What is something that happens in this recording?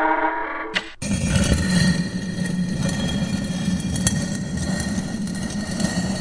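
A heavy stone door rumbles and grinds as it slides open.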